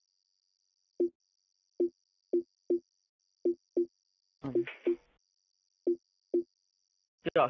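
Short electronic blips sound as a menu selection moves.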